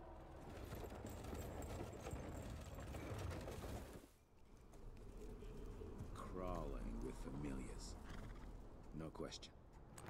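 Horses' hooves clop slowly on dirt.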